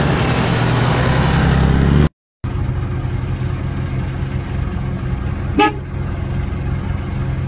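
A heavy truck engine rumbles nearby.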